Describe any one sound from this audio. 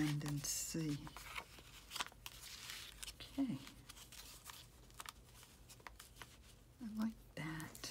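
Paper rustles softly as hands press and smooth it.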